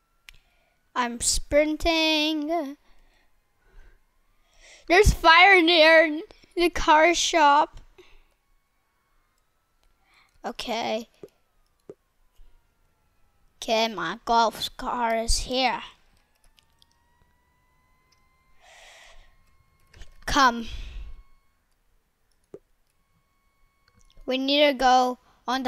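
A boy talks with animation into a close microphone, in short bursts.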